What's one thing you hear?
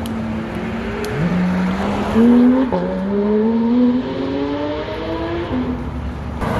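A sports car engine revs up loudly as it accelerates.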